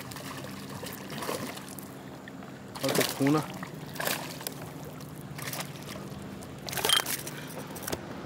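A fish thrashes and splashes at the water's surface.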